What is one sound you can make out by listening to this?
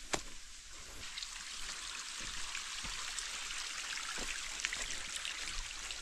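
A shallow stream splashes and trickles over stones.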